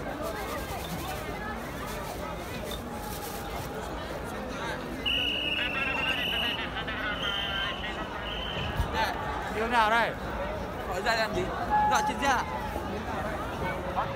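A crowd chatters and murmurs outdoors all around.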